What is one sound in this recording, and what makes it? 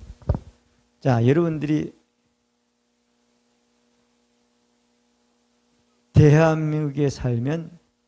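An older man speaks into a microphone in short bursts.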